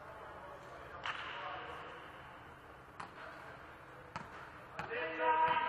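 A volleyball is struck hard, with thuds echoing around a large hall.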